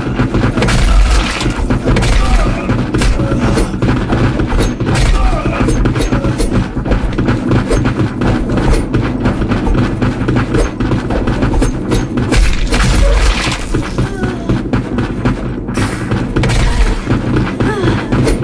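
Knife slashes whoosh and strike in quick bursts.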